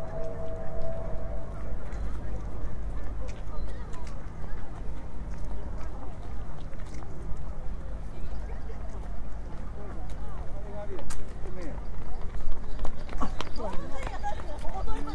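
Footsteps scuff on a gravel path.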